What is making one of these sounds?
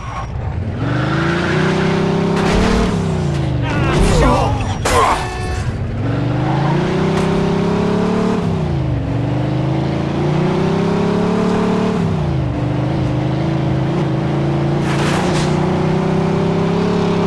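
A car engine revs loudly, rising and falling as gears change.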